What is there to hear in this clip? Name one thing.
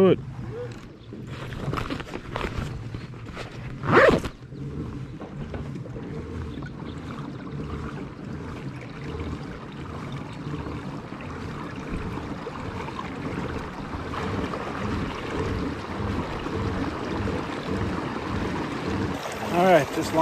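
Water splashes and laps against a small boat's hull.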